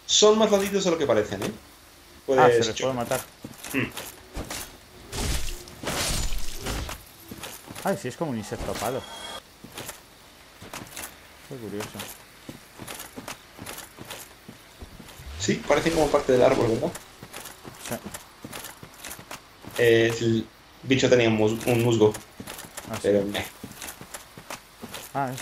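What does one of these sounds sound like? Armoured footsteps clank and thud on the ground.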